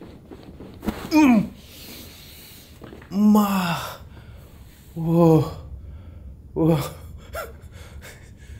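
A man groans and exclaims loudly nearby.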